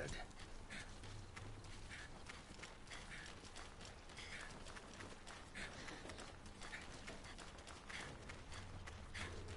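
Footsteps tread steadily on hard ground.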